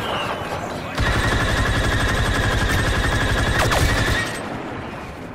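A blaster rifle fires a rapid burst of shots.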